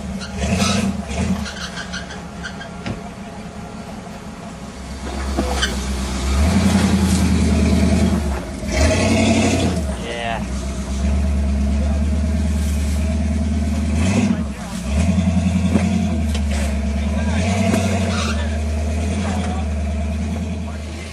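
An off-road vehicle's engine rumbles and revs hard up close.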